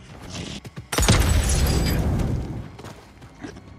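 A glass bottle bursts into roaring flames.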